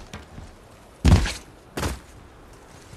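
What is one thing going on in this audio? Feet land heavily on stone.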